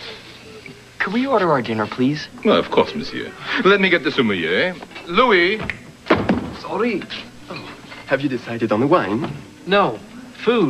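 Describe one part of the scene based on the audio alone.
A man speaks with animation to people at a table.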